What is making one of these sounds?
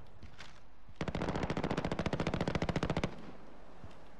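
A rifle fires in a rapid, steady burst.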